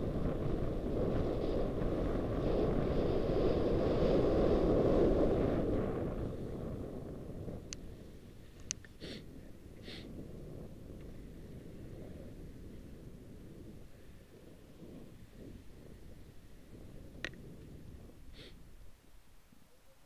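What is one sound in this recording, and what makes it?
Wind rushes loudly past close by, then eases off.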